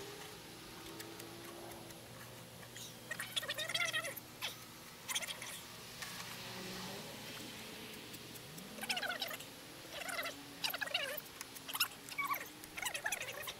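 Hands scrape and knock against metal.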